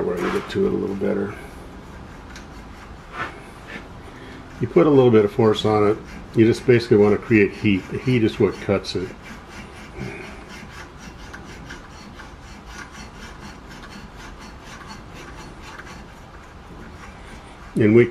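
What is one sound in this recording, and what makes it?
A wooden handle scrapes and squeaks against a plastic pipe.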